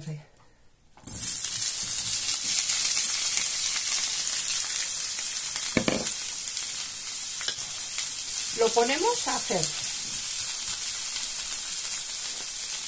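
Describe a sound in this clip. Vegetables sizzle loudly in a hot pan.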